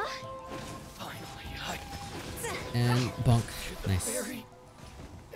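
Fiery magical blasts crackle and boom in a fight.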